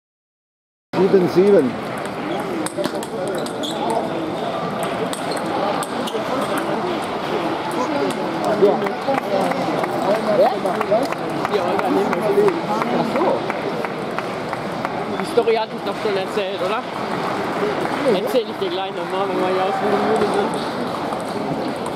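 Ping pong balls click back and forth on paddles and a table.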